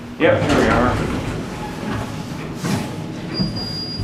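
Elevator doors slide shut.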